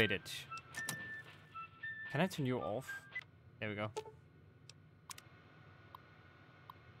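A computer terminal beeps and chirps.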